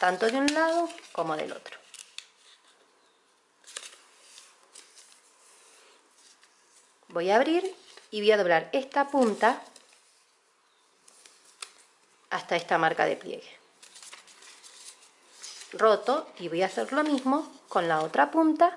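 Paper rustles and creases as it is folded.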